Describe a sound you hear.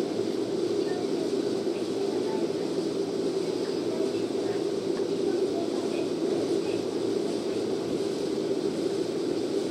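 A train rolls steadily along the rails with a low rumble.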